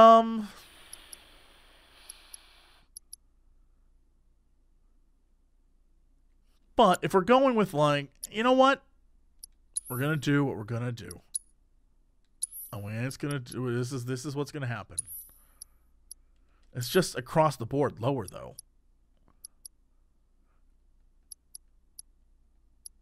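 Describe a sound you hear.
Short soft menu ticks click now and then.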